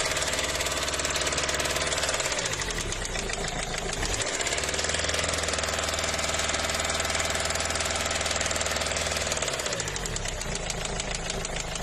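A diesel engine idles with a steady, rapid clatter close by.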